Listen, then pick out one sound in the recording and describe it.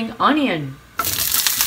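Food sizzles as it drops into hot oil.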